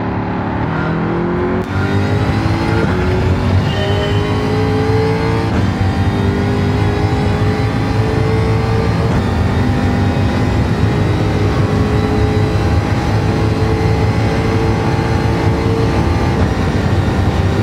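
A racing car engine roars loudly, revving up through the gears as it accelerates.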